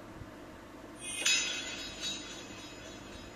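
A short whooshing chime plays from a small device speaker.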